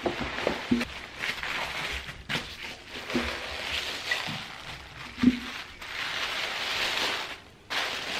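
Thin tissue paper rustles and crackles as it is folded and scrunched.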